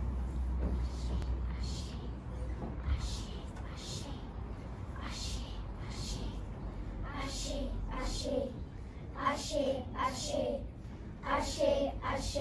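A children's choir sings together, softly at first and then louder.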